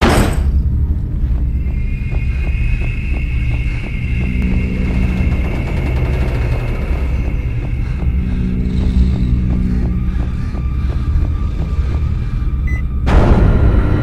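Footsteps thud quickly and evenly on a hard floor.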